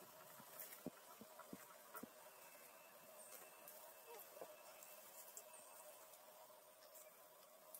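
Leaves rustle as a monkey pulls at them.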